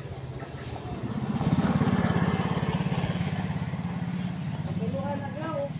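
A motorcycle engine rumbles as it rides by.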